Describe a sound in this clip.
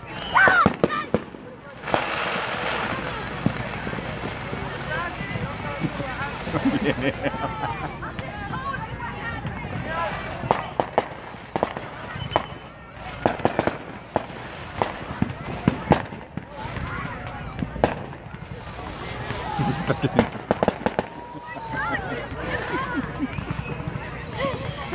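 Fireworks bang and crackle in the distance, outdoors at night.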